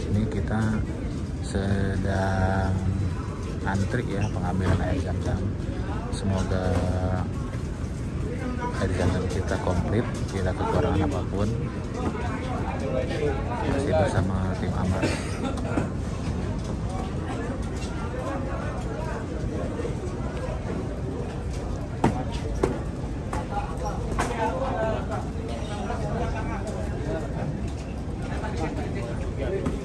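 Cardboard boxes thump and scrape as they are stacked on a trolley.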